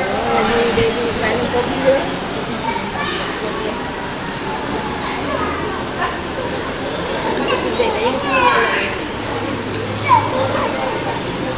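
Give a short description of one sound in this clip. A crowd of men, women and children murmur and chatter nearby.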